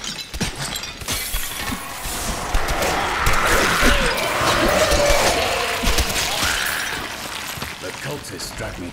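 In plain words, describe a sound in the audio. Weapons strike and bones clatter in a fierce fight.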